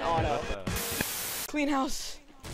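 Loud static hisses briefly.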